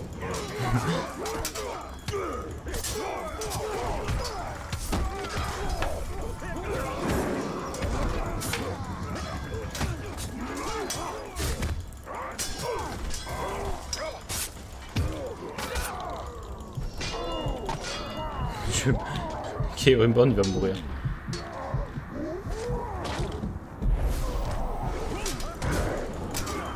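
Swords clash and strike in quick, repeated blows.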